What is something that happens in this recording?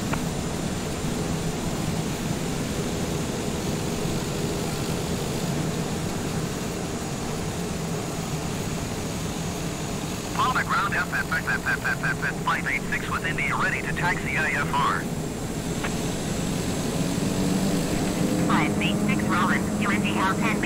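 A single-engine propeller plane's engine drones as it taxis.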